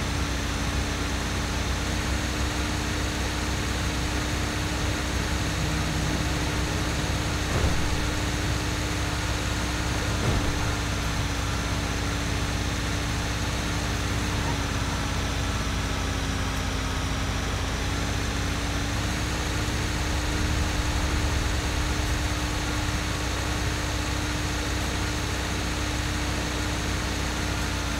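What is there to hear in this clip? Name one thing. A heavy truck engine rumbles steadily as a tanker truck drives along.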